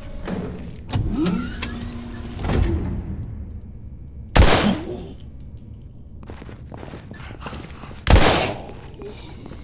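A creature groans and snarls nearby.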